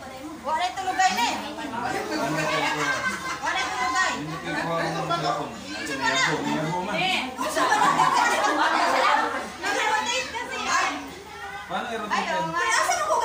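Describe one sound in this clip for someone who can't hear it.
Several women talk and laugh together close by.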